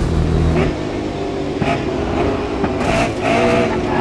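Racing cars crash into each other with a loud bang.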